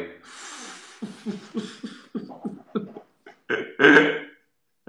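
A middle-aged man laughs heartily in bursts.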